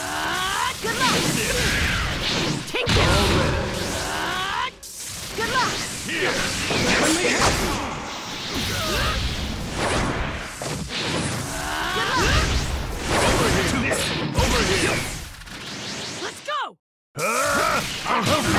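Energy attacks crackle and whoosh.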